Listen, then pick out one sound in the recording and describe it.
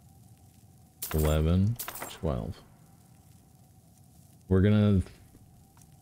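A young man speaks in short bursts, close to a microphone.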